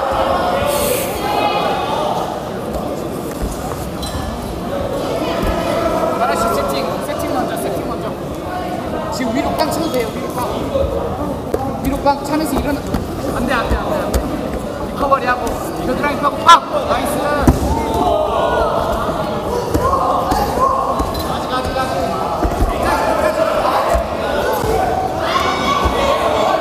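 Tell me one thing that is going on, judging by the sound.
Grapplers thump and scuffle on a mat.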